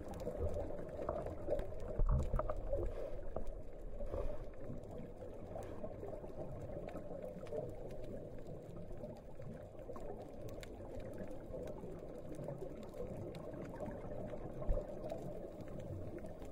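A scuba diver breathes out through a regulator underwater, releasing gurgling bubbles.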